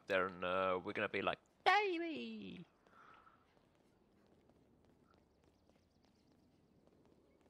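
Footsteps patter on stone stairs.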